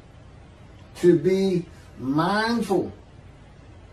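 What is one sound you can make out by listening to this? An elderly man speaks calmly through a microphone on an online call.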